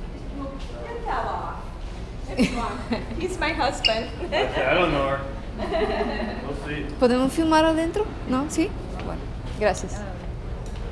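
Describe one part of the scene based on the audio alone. A middle-aged woman talks close by.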